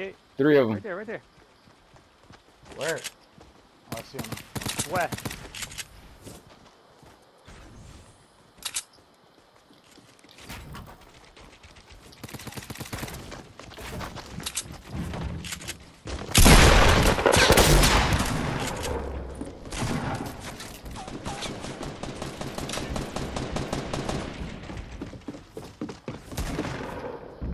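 Wooden walls and ramps are built with quick, sharp clacks.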